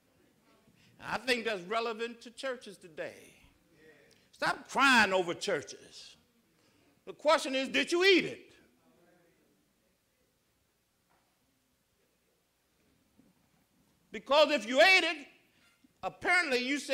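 A middle-aged man speaks slowly and solemnly through a microphone, with long pauses between phrases.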